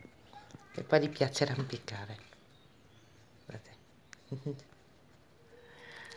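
A guinea pig nibbles and crunches a lettuce leaf close by.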